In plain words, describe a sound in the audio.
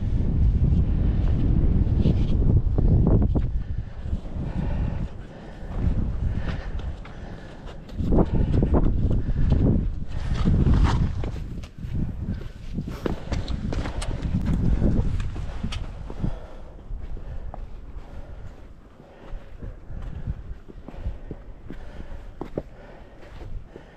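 Wind gusts and rumbles across the microphone outdoors.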